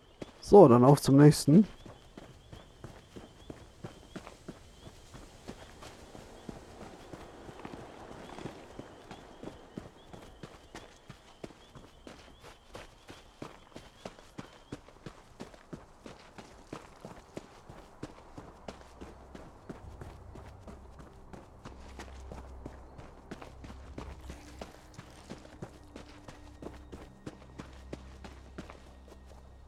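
Footsteps tread steadily over grass and dirt.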